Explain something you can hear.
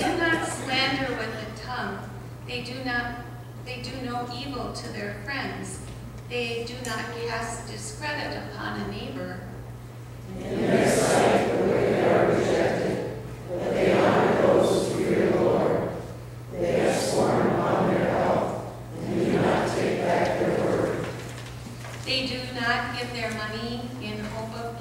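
A woman reads aloud calmly through a microphone in an echoing hall.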